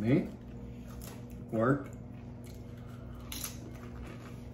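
A man crunches a tortilla chip close to a microphone.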